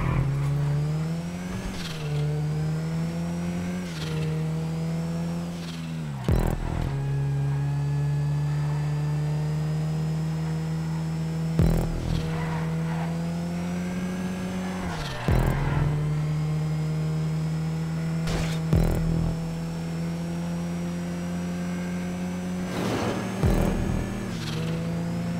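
A car engine roars steadily, rising in pitch and dropping sharply as gears shift.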